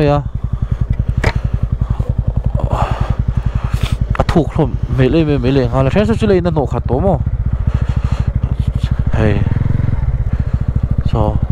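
A motorcycle engine thumps steadily as the bike rides along.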